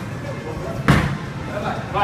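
A bowling ball thuds onto a wooden lane.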